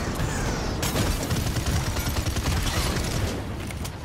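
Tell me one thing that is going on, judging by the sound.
A futuristic gun fires in rapid bursts.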